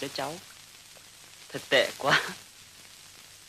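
A young man speaks with emotion, close by.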